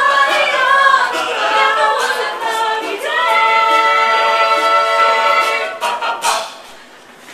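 A choir of young voices sings together in harmony and ends on a held chord.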